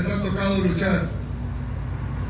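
A man speaks calmly into a microphone, heard through loudspeakers.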